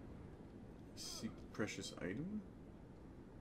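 A man exclaims loudly through a headset microphone.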